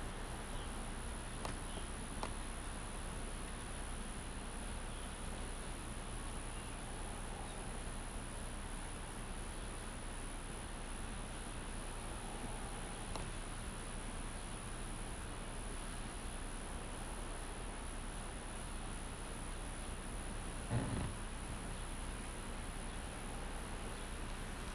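Bicycle tyres roll quietly over pavement.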